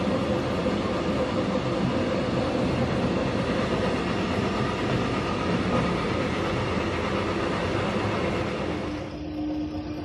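A moving train rumbles and clatters, heard from between coupled cars.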